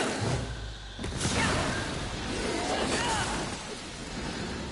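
Fire bursts with a loud explosion.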